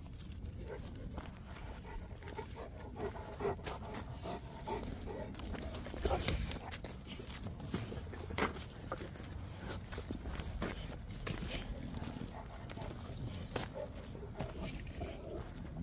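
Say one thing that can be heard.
Dogs growl and snarl while play-fighting close by.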